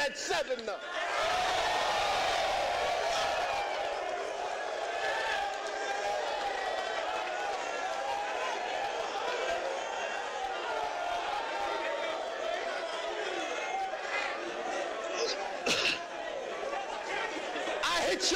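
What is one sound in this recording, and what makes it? A crowd of men chatters and murmurs loudly.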